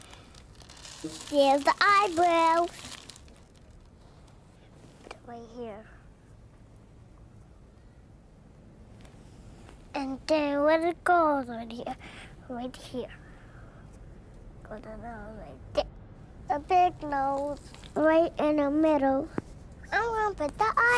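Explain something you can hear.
A young girl talks brightly nearby.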